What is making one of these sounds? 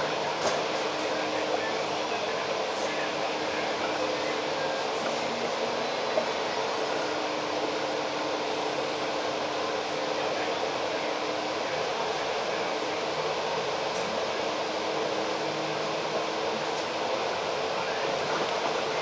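A bus engine hums steadily close by.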